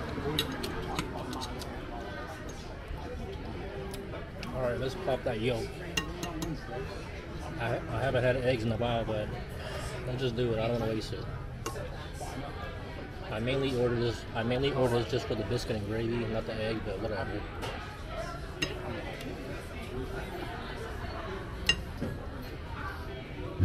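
A fork and knife clink and scrape on a plate.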